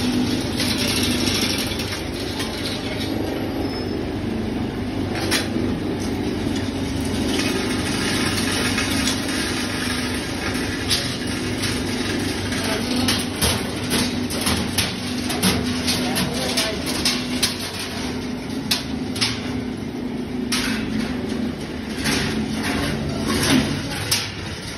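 An electric hoist hums steadily.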